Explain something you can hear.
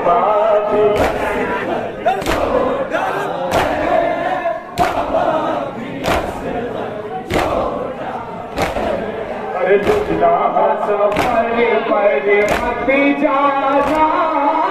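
Men beat their chests with their hands in a steady rhythm.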